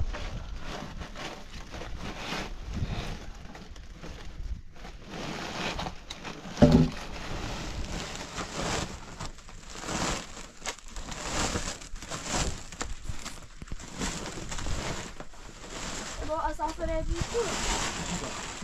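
A plastic tarp rustles and flaps as it is pulled.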